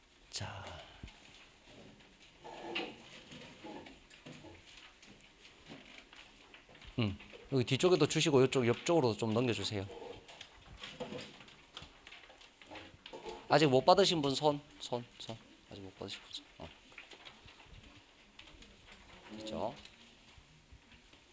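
A man speaks with animation into a microphone, in a slightly echoing room.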